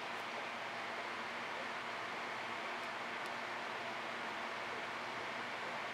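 A brush softly strokes wet paint on a board.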